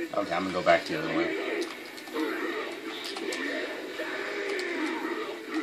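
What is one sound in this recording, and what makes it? Video game punches and slashes crack in quick bursts from a television speaker.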